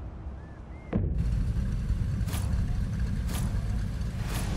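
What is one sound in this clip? A sports car engine rumbles loudly at idle.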